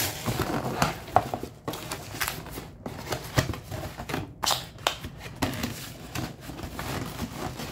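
A cardboard box lid knocks and taps as it is handled.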